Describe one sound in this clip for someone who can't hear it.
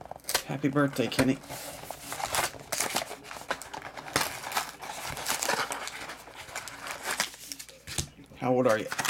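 Foil card wrappers crinkle and rustle as hands handle them.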